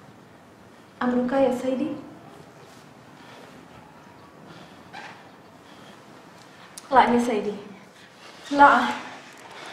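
A young woman answers and pleads in distress nearby.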